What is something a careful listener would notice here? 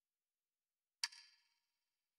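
A single soft click sounds as a menu button is pressed.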